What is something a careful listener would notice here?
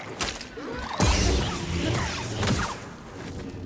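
A lightsaber clashes and crackles with sparks.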